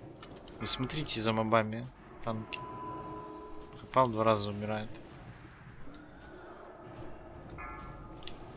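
Magic spells crackle and chime.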